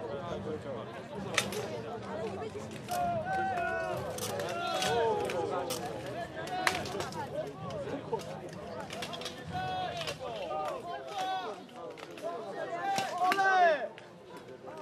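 Swords clash and clang in a fight outdoors.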